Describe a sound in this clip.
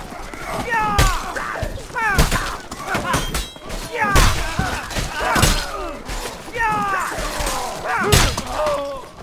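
Steel weapons clash and strike with sharp, heavy blows.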